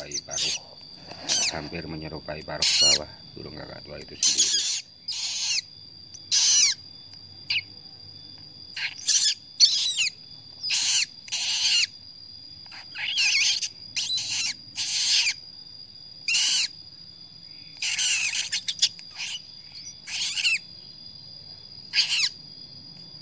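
A baby bird cheeps loudly and shrilly in short bursts.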